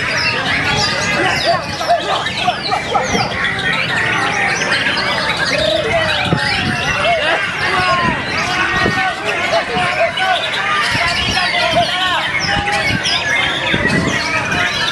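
A caged songbird sings busy, varied whistling phrases up close.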